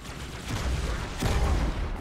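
A heavy energy weapon fires in short bursts.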